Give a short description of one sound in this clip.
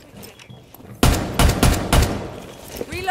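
A rifle fires a few shots.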